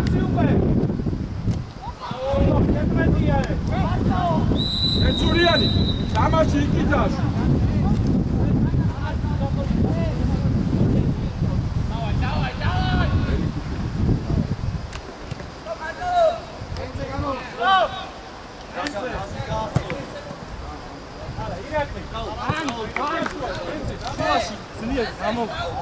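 Young men shout to each other across an outdoor football pitch.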